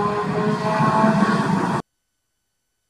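A race car engine roars along a track.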